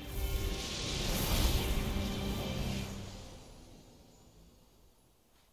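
A whooshing magical sound sweeps past and fades.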